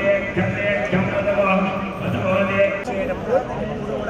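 A man chants in a steady, sing-song voice nearby.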